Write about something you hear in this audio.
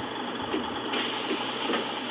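Bus doors hiss open.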